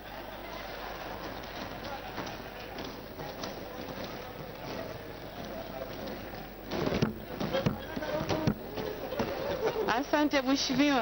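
A crowd of men murmurs and laughs in the background.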